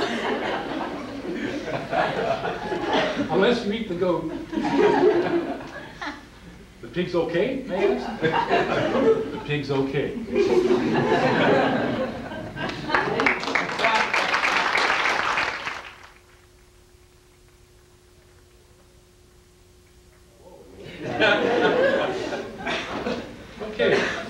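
A man speaks with animation, close by and slightly muffled.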